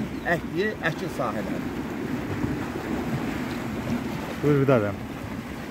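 Water rushes and churns steadily.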